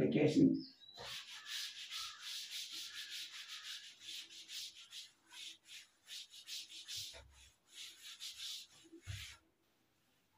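A cloth rubs and wipes across a chalkboard.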